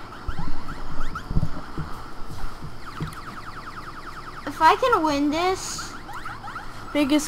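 Rapid laser shots zap in quick rising chirps.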